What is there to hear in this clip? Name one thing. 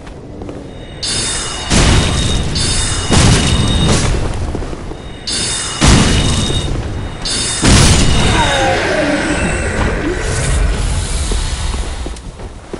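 Magic spells whoosh and crackle loudly.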